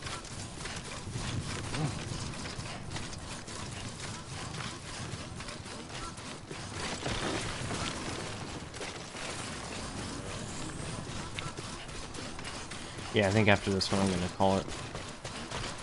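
Footsteps crunch over grass and rocky ground.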